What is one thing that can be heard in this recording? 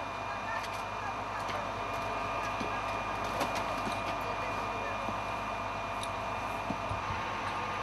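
A fire hose sprays water in a steady hiss.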